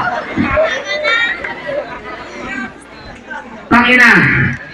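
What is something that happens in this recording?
A crowd outdoors chatters and cheers.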